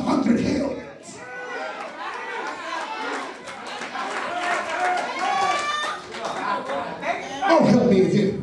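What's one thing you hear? Men in an audience laugh and call out.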